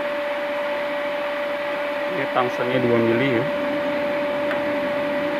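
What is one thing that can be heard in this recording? A machine hums with a steady high tone.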